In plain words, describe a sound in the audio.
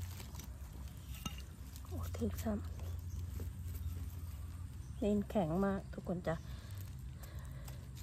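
Leaves rustle as a hand picks a mushroom.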